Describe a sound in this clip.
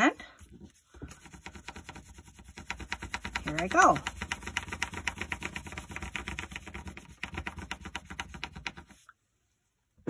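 A crayon scratches rapidly back and forth on paper.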